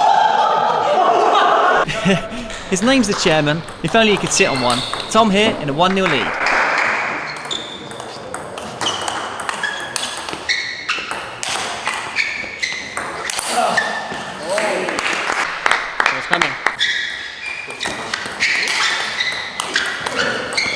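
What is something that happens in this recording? A table tennis ball clicks sharply off paddles and the table in quick rallies.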